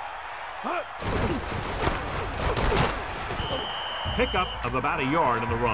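Football players crash together with heavy thuds.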